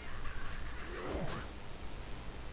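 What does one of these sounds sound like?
A large bird screeches.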